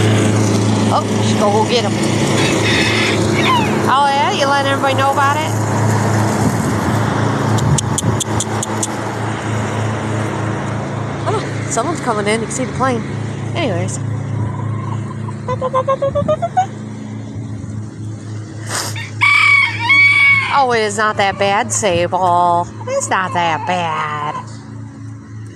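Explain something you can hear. Chickens cluck and crow nearby outdoors.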